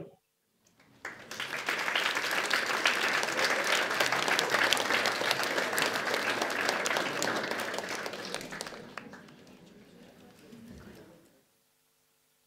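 A large audience applauds in a roomy hall, then the applause dies away.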